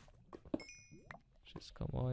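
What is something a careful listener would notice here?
A small item pops as it is picked up.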